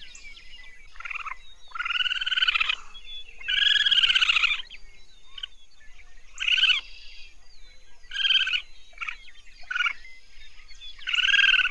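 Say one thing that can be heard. Raccoons chitter with short, high trills.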